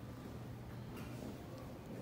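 Footsteps walk across a hard floor.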